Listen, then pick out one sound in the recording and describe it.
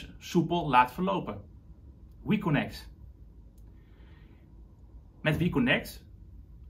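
A young man speaks calmly and close by, in short phrases.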